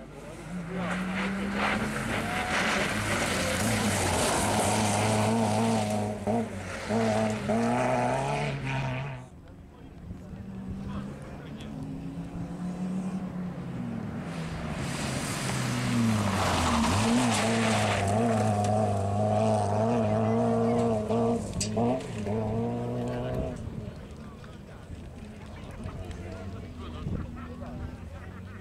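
A rally car engine roars and revs hard up close.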